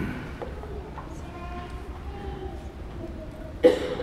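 A man speaks softly in a reverberant room.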